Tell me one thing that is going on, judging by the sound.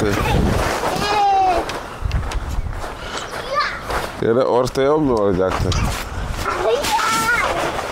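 Children shout and squeal playfully outdoors.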